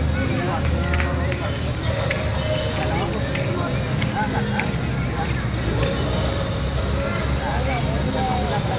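Young girls chatter and call out at a distance outdoors.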